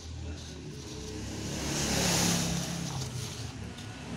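Sheets of printer paper rustle in a hand.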